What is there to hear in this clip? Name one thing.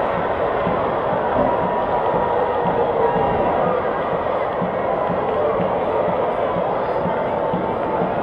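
A large stadium crowd murmurs and chatters outdoors.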